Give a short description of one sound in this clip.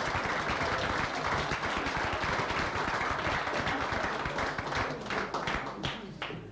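A crowd applauds loudly, the clapping thinning out near the end.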